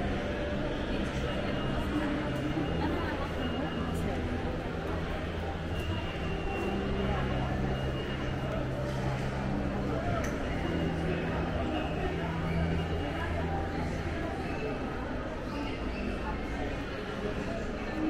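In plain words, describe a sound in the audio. Footsteps tap on a hard floor nearby.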